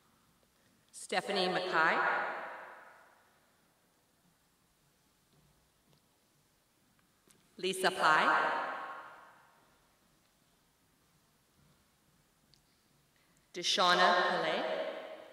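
A woman announces names through a microphone in a large echoing hall.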